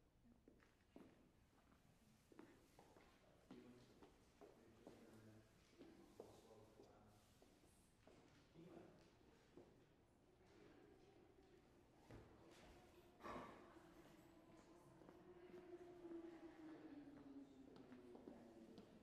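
Footsteps tap on a wooden stage in an echoing hall.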